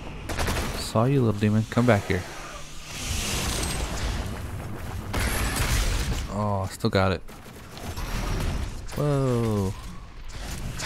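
A monster roars and snarls up close.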